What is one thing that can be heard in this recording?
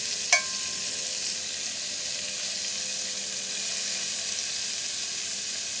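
A metal spoon scrapes and clinks against a cast iron pot.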